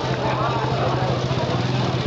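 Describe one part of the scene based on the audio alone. A crowd of people talks and calls out nearby outdoors.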